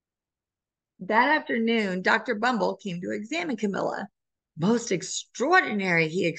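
A woman reads aloud with expression over an online call.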